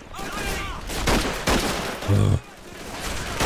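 Rifle shots ring out loudly.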